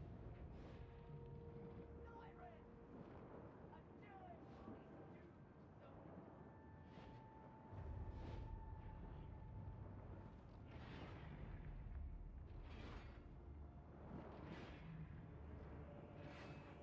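Magic blasts whoosh and crackle repeatedly.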